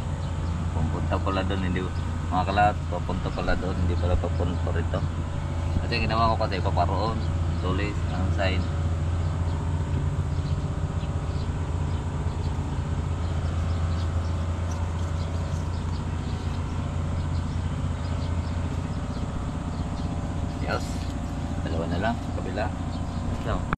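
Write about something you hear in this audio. A man talks calmly close to the microphone.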